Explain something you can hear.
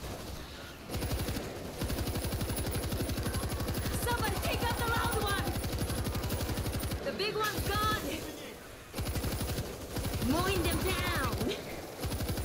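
A heavy machine gun fires in rapid, loud bursts.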